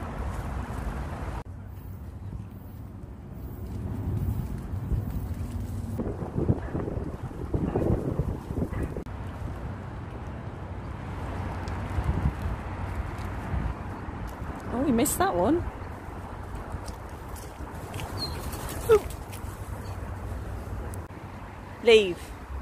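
Dry leaves crunch underfoot as a dog is walked.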